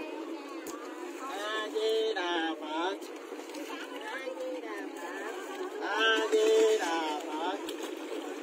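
Several adults talk with animation close by.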